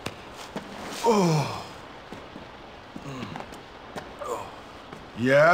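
A young man groans in pain.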